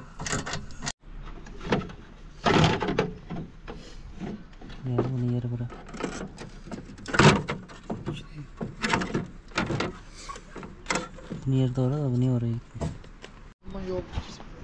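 A metal bracket clanks against a car's frame.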